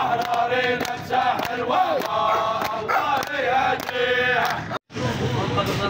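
A crowd of men chants loudly in unison outdoors.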